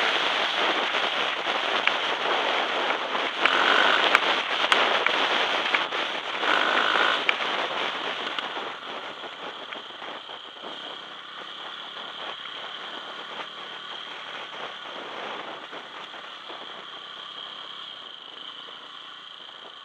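Tyres crunch and rattle over a gravel track.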